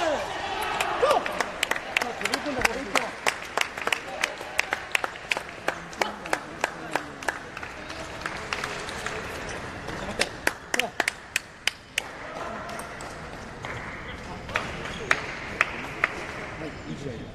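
Table tennis balls click rapidly against paddles and tables in a large echoing hall.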